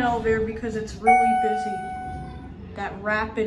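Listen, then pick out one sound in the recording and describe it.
An elevator chime rings out with a clear tone.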